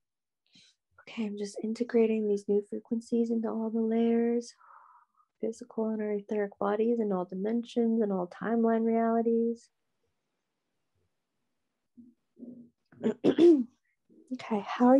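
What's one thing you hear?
A young woman sings in long, held tones close by.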